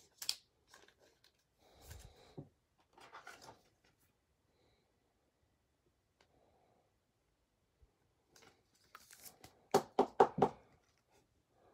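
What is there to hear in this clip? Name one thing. Plastic card sleeves rustle and click as hands handle them.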